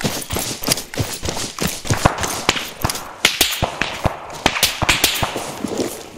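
Footsteps brush and thud quickly through tall grass.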